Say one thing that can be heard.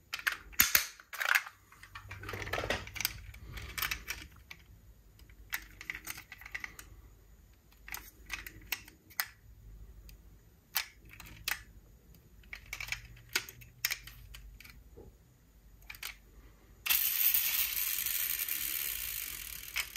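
Small plastic toy cars clatter and click.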